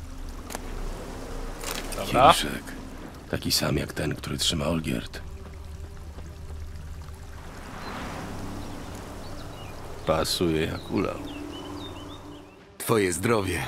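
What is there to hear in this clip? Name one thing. A fountain splashes steadily.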